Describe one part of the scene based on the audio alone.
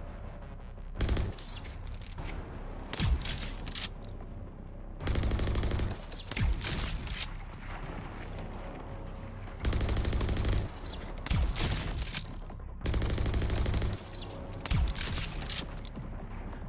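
A futuristic gun fires in loud bursts with a deep boom.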